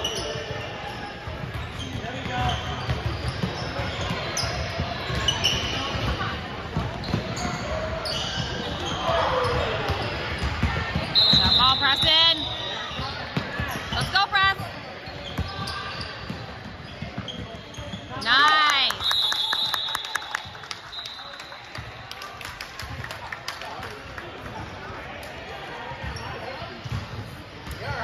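Players and spectators call out and chatter in the background.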